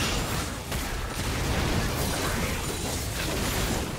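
A fiery blast roars in a game.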